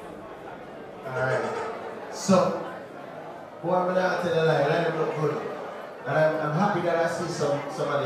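A man speaks with animation through a microphone and loudspeakers in a large room.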